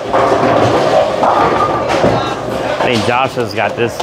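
Bowling pins clatter as a ball strikes them.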